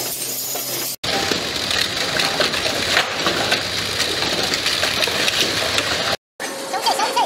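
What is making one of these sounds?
A conveyor machine rattles and clatters.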